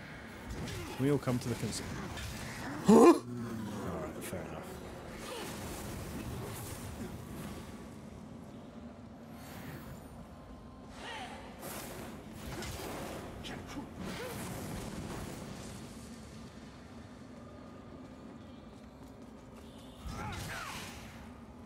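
Fire bursts and roars in short blasts.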